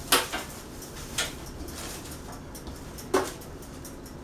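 A knife chops on a cutting board with a few sharp knocks.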